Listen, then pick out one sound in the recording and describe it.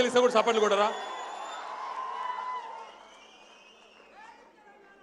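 A large crowd cheers and claps.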